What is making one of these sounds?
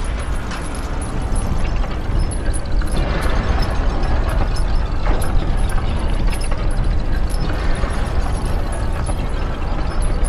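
A heavy stone mechanism grinds and rumbles as it slowly turns.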